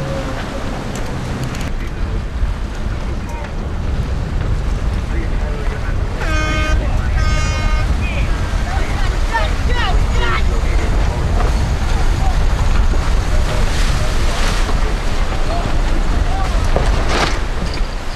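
Wind blows strongly past flapping sails.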